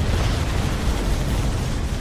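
Distant gunfire rattles in a battle.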